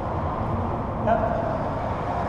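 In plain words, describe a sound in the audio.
A racquet strikes a racquetball with a sharp crack in an echoing court.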